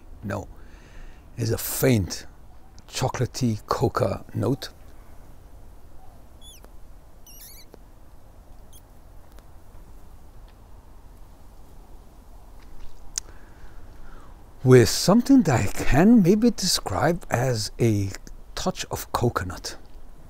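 A middle-aged man talks calmly close to a microphone.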